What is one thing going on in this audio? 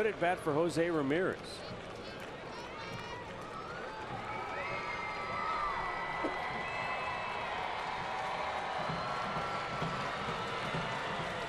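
A large stadium crowd murmurs and whistles in the distance.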